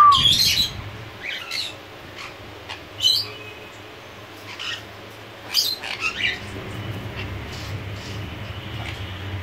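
A parrot's claws scrape and rattle on a wire cage.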